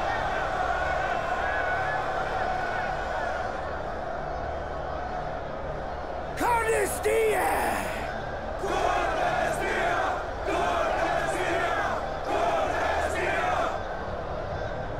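A large crowd murmurs and cheers outdoors throughout.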